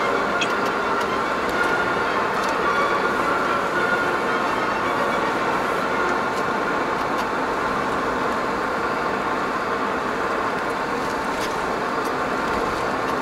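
A car cruises along a paved road, heard from inside.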